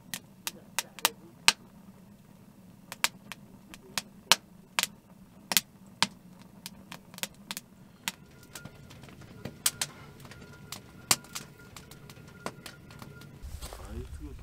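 A wood fire crackles and pops inside a stove.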